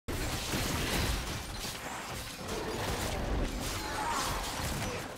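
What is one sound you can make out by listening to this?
Game fighting effects whoosh and clash with magical bursts.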